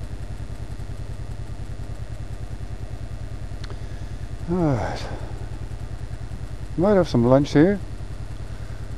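A motorcycle engine idles with a steady low thumping close by.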